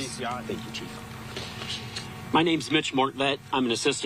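A second man speaks through a microphone.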